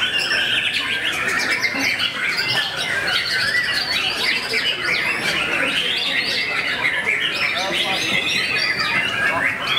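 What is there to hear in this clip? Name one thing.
A songbird sings a fast, warbling song close by.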